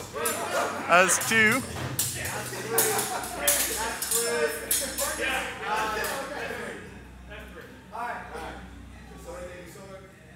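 Wooden swords clack against each other.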